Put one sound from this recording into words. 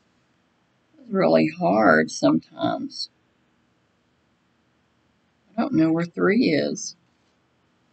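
A middle-aged woman speaks briefly and calmly into a headset microphone.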